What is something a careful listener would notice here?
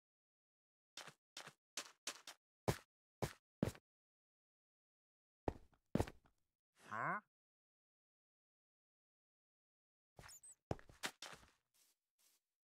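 Stone blocks clack sharply as they are broken and placed, in quick taps.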